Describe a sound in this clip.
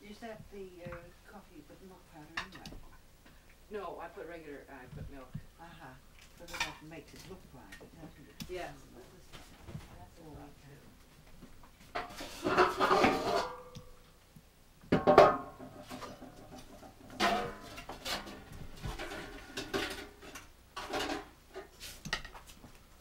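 Dishes and cutlery clink and clatter.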